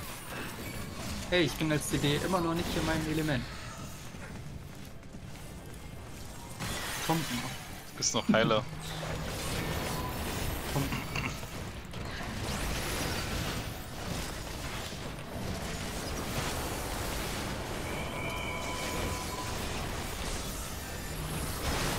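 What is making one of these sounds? Magic spells crackle and blast during a fight.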